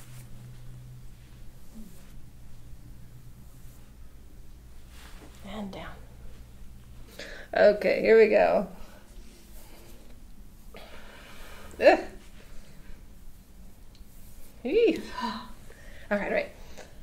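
Hands rub and knead bare skin softly.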